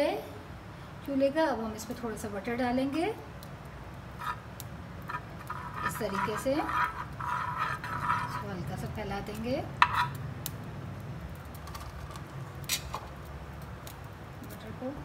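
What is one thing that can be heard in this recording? Butter sizzles softly in a hot pan.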